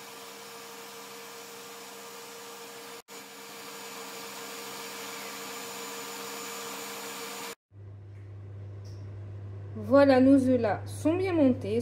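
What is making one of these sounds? An electric stand mixer whirs steadily as its beater spins.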